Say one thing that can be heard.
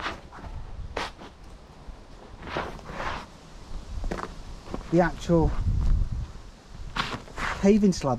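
Footsteps tread on soft soil.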